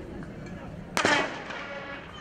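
A starting pistol fires with a sharp crack.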